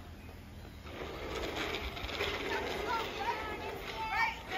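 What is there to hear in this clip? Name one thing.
A young child talks and calls out with animation nearby.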